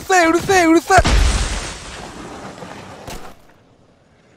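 A snowy explosion bursts with a loud whoosh that slowly fades.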